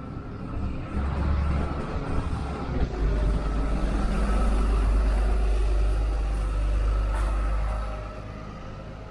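A bus engine rumbles loudly as a double-decker bus passes close by and moves away.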